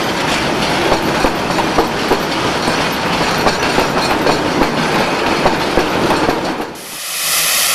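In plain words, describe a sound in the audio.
Freight wagons rattle and clank past close by.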